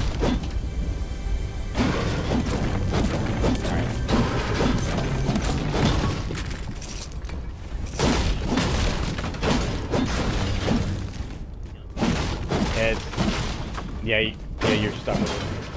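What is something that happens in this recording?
A pickaxe strikes wood and metal again and again.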